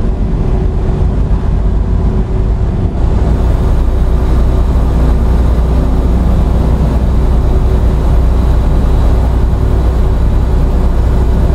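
A truck engine rumbles steadily while driving on a highway.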